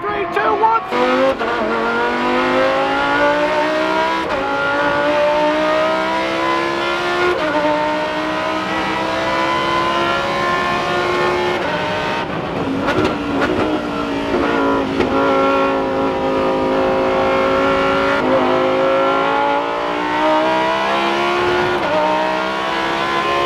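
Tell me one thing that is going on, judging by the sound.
A race car engine roars and revs up and down through the gears.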